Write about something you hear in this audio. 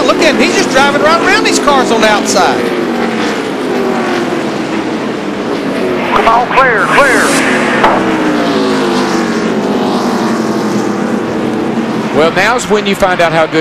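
Engines rise and fall in pitch as cars pass close by.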